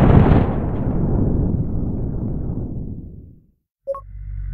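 A deep explosion rumbles and slowly fades.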